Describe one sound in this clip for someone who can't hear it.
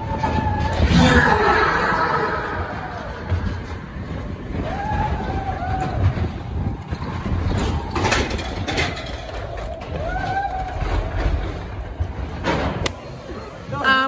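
A roller coaster rumbles and rattles along its track.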